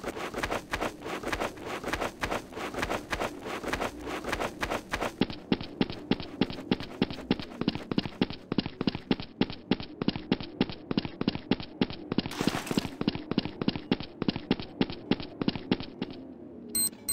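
Quick footsteps run steadily over hard ground.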